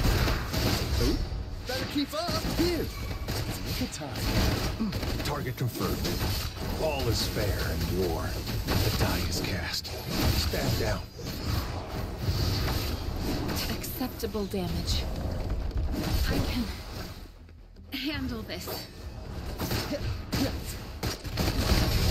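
Sword slashes whoosh and clash in quick bursts.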